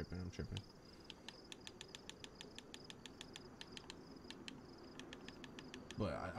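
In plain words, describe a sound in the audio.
Soft menu clicks tick in a quick, steady series.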